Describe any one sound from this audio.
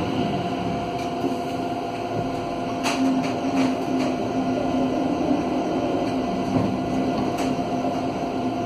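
A tram's motor hums steadily as the tram rolls along the track.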